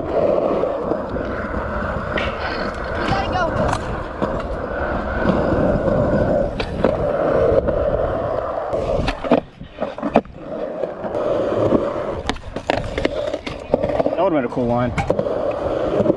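Skateboard wheels roll and rumble over rough concrete.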